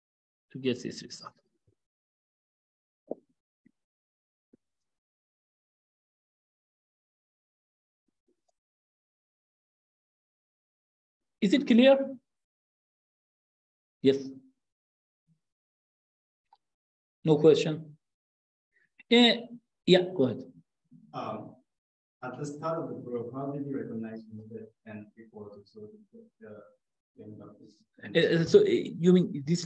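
A man speaks calmly and haltingly into a close microphone.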